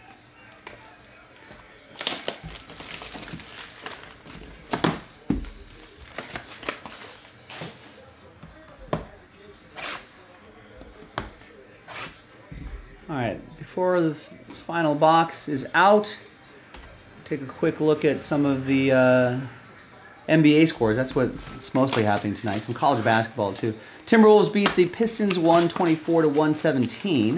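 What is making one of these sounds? Plastic wrap crinkles and tears as hands unwrap a box.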